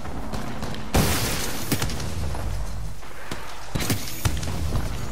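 Gunshots crack in short bursts, loud and close.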